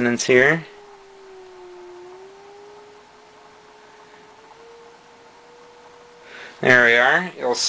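A faint steady electronic tone hums from a coil and slowly rises a little in pitch.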